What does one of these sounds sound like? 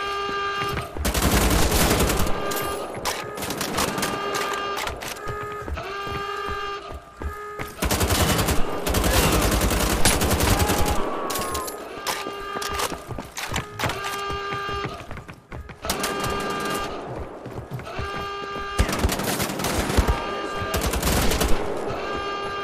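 Two automatic rifles fire in rapid bursts.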